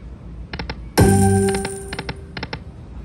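A slot machine sounds a loud ringing chime.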